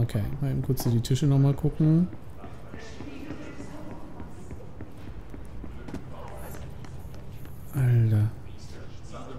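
Footsteps run quickly across a floor.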